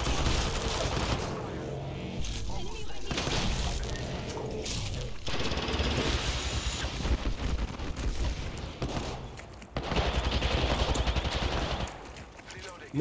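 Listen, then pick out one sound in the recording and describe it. Gunfire and explosions crackle and boom from a video game.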